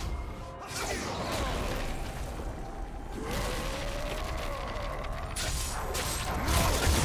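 Game spells whoosh and crackle in a fast battle.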